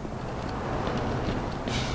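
A rifle fires a loud shot that echoes.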